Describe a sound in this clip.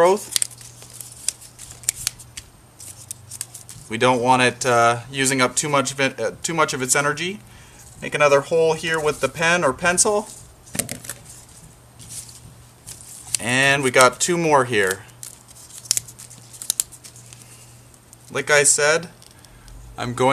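Leafy plant stems rustle and snap as they are handled.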